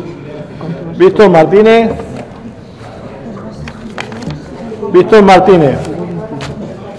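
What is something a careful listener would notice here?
A man reads out loud through a microphone in a large echoing hall.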